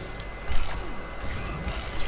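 A laser beam buzzes and crackles.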